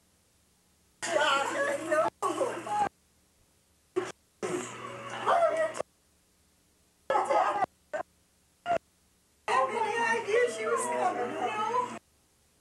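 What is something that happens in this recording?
Men and women talk and chatter nearby in a room, in short bursts.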